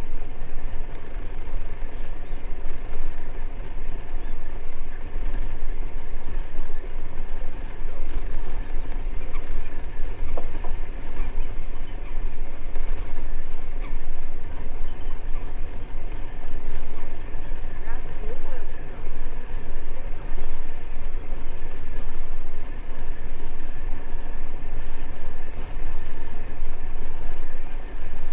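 Wind blows strongly outdoors, rumbling and buffeting close by.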